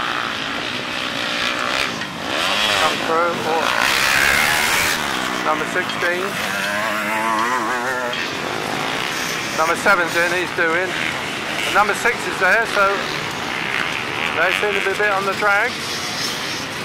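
Dirt bike engines rev and whine up and down nearby, outdoors.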